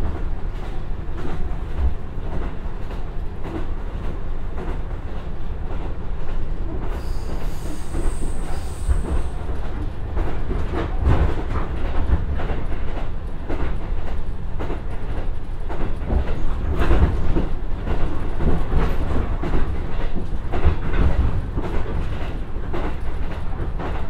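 Wind rushes past an open train window.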